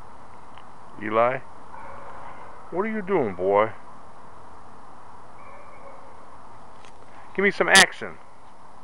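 A puppy howls and yelps in short, high bursts.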